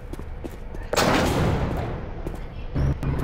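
A metal lift gate rattles and clangs shut.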